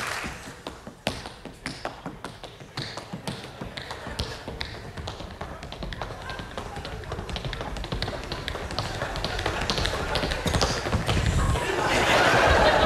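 Tap shoes click rapidly on a wooden stage.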